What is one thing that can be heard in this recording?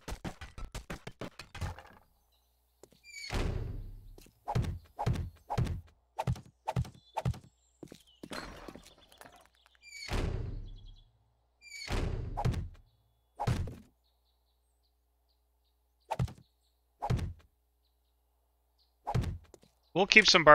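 Wooden barricades clunk into place one after another.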